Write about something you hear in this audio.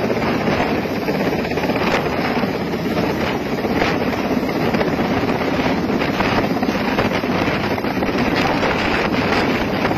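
A large twin-turbine transport helicopter hovers low overhead, its rotor thudding and turbines roaring.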